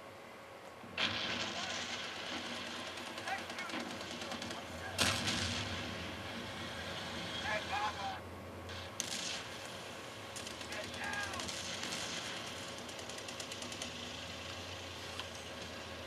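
Gunfire and explosions boom nearby.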